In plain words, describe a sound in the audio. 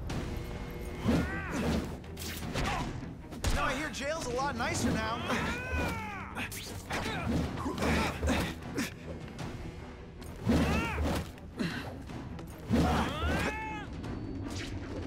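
Punches and impacts thud repeatedly.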